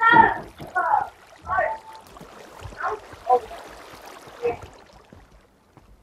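Water flows and splashes nearby.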